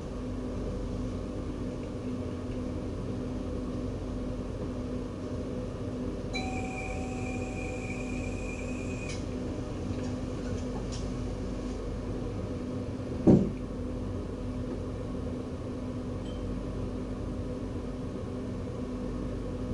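A tram's motor hums steadily while it waits at a stop.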